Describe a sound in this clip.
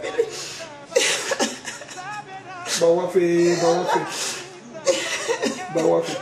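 A woman sobs and cries.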